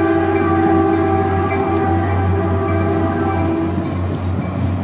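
A commuter train rolls past.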